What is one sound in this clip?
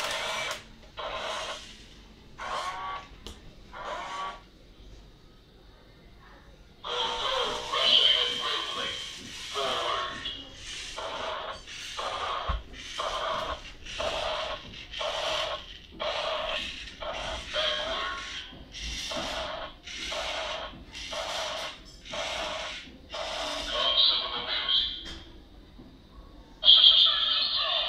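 A toy robot plays loud electronic sound effects in short, repeated bursts.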